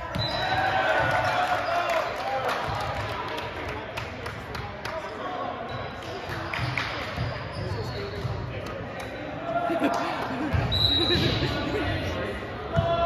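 Young men talk and cheer together in a noisy echoing gym.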